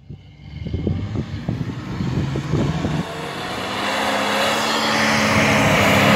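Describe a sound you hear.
An off-road vehicle's engine rumbles as it drives closer over rough ground.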